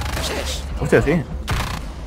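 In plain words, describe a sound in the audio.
A rifle fires a burst of shots.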